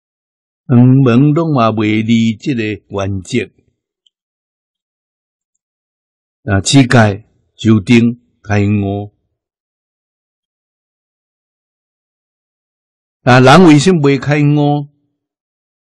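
An elderly man speaks calmly and slowly, close to a microphone, with long pauses.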